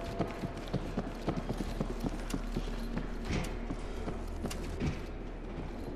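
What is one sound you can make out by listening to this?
Boots crunch on snow.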